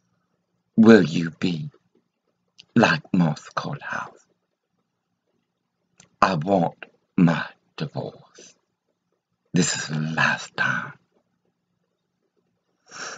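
An elderly woman speaks calmly and close to a microphone, in short phrases with pauses.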